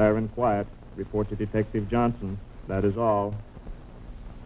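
An elderly man speaks calmly and gravely.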